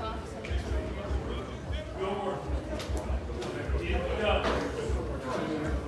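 Several men talk nearby in an echoing corridor.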